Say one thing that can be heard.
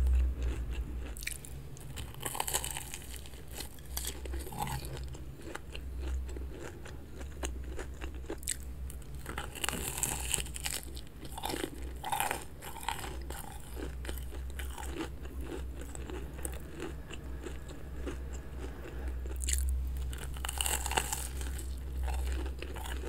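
A young woman chews loudly and wetly close to a microphone.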